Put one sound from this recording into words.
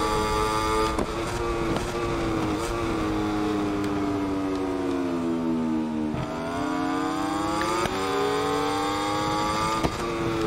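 Gears shift with sharp clicks.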